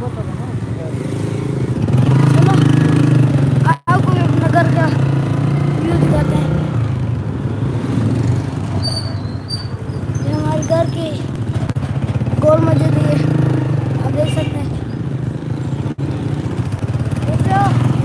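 A boy talks with animation close to the microphone.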